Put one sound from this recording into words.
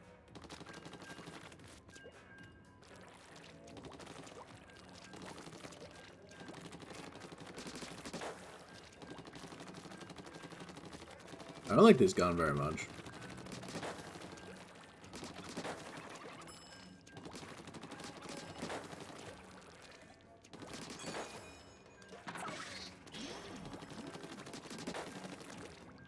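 Wet splattering shots of ink burst repeatedly.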